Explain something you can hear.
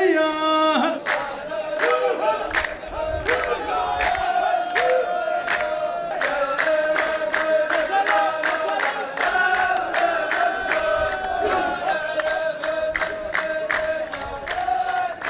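A group of men sings together in chorus.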